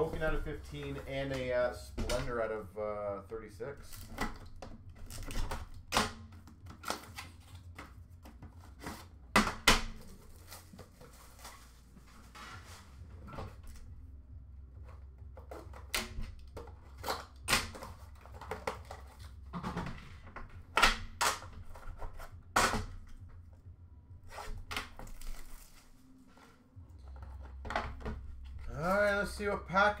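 Cardboard boxes knock and rustle as they are handled.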